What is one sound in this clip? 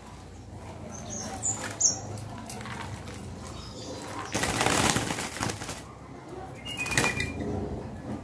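Small birds chirp briefly.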